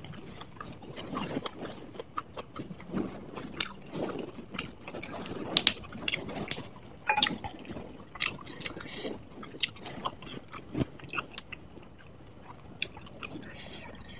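Fresh leafy herbs rustle and crackle close to a microphone.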